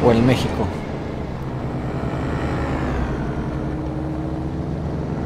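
A truck engine drones steadily on the road.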